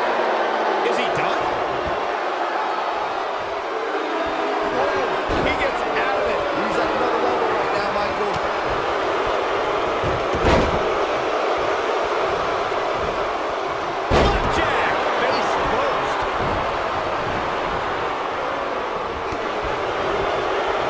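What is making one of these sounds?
A large crowd cheers and roars steadily throughout.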